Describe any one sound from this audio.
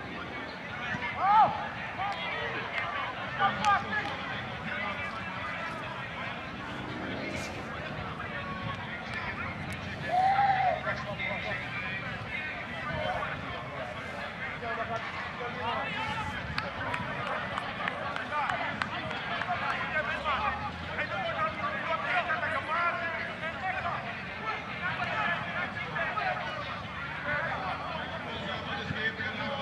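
Spectators chatter and call out across an open outdoor field.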